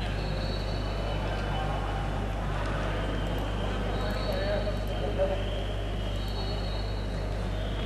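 A man talks to a group in an echoing hall.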